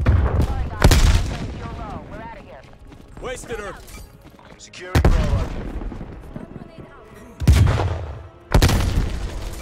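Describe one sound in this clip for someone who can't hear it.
Loud gunshots boom now and then, each with a rolling echo.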